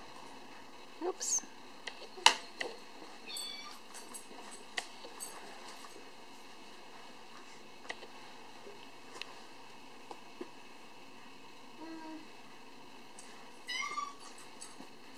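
A toddler squeals and babbles nearby.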